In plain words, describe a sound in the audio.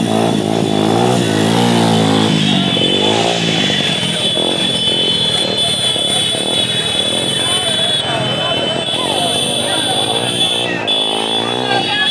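A crowd of people talks and shouts outdoors.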